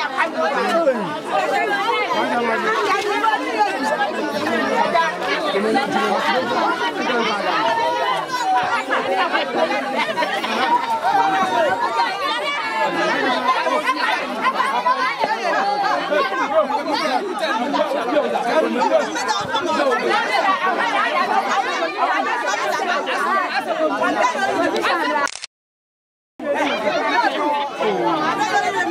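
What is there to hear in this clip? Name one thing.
A large crowd of men, women and children chatters and shouts excitedly outdoors.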